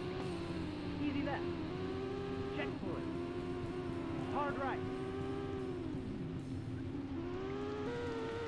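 Tyres skid on loose gravel.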